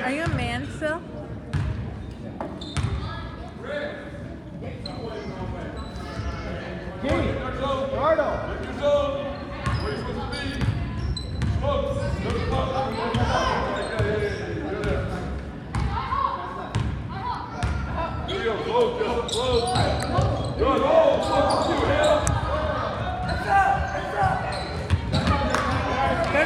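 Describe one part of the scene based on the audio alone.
Young boys shout and call out across an echoing hall.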